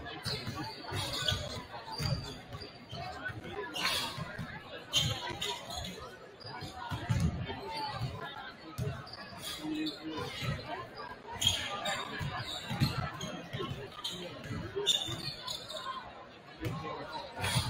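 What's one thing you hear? Basketballs bounce on a hardwood floor in a large echoing gym.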